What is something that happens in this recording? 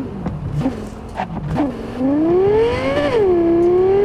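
Tyres screech as a car skids through a turn.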